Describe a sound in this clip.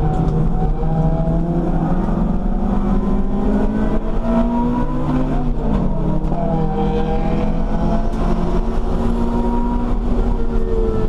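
A race car engine roars loudly from inside the cabin, revving up and down through gear changes.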